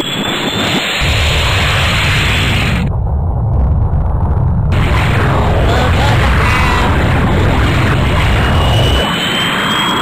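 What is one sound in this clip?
A loud explosion roars with a deep, steady rumble.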